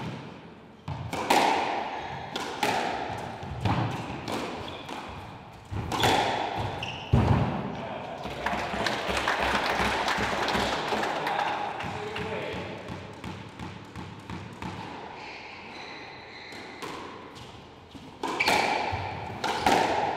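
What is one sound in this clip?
Sneakers squeak on a wooden court floor.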